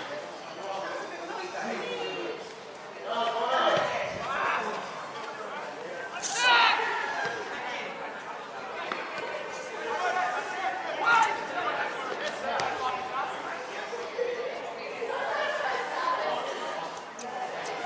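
Players shout to one another across an outdoor pitch.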